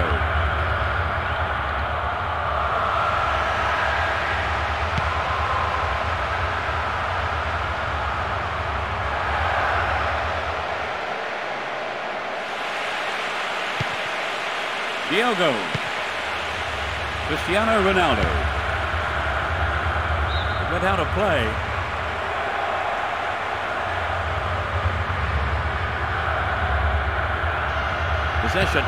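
A stadium crowd roars and chants steadily throughout.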